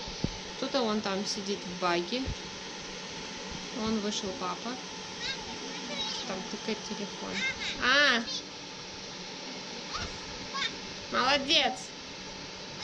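A young child shouts and squeals playfully nearby.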